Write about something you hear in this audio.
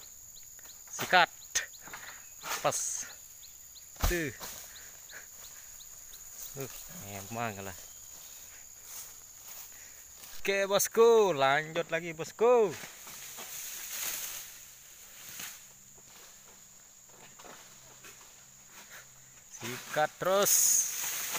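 A man calls out loudly in short bursts nearby.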